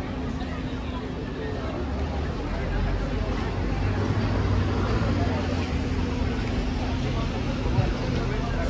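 A crowd of people chatter outdoors.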